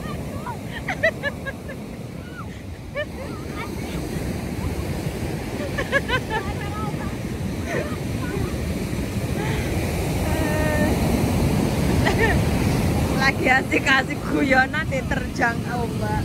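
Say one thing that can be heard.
Young girls shout and laugh nearby.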